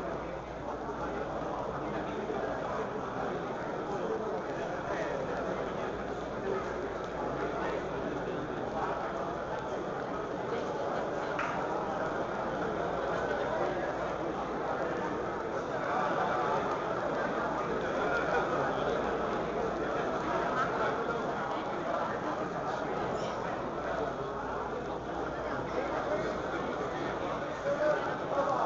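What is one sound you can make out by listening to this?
A crowd of spectators murmurs and chatters steadily in a large echoing hall.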